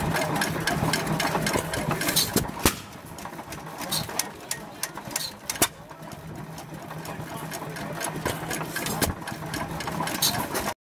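An old stationary engine chugs steadily.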